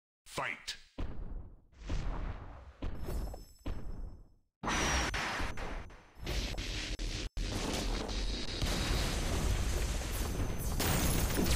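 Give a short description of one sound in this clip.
Giant monsters clash with heavy impacts.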